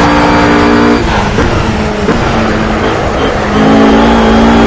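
A GT3 race car engine blips as it downshifts under braking.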